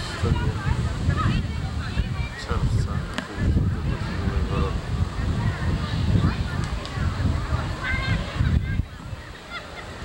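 A crowd of adults chats in a murmur nearby.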